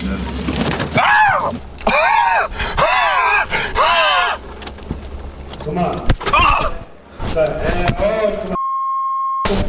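A man laughs loudly and whoops.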